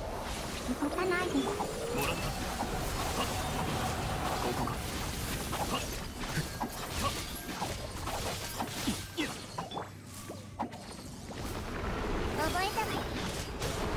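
Magic attacks crackle and burst in quick bursts.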